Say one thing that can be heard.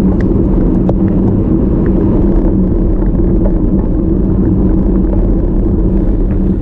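Wind rushes loudly over a moving bicycle.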